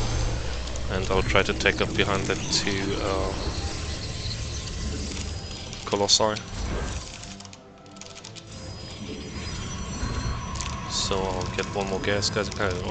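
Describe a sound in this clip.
Short electronic game chimes and blips sound now and then.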